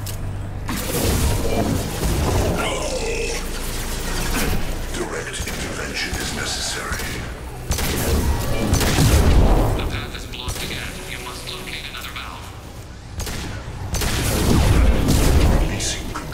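Electric blasts crackle and boom.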